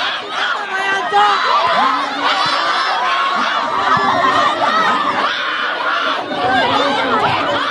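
A large crowd of spectators cheers and shouts loudly outdoors.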